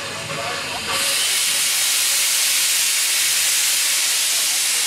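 Steam hisses loudly and steadily from a locomotive.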